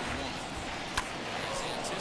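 A bat cracks sharply against a baseball.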